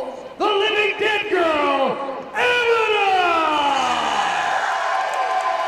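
A woman lets out long, falling screams.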